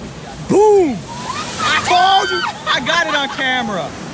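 A large wave crashes and sprays against rocks.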